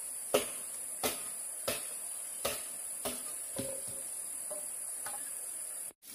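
A knife chops at bamboo poles with sharp knocks.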